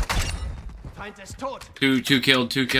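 A young man talks excitedly into a microphone.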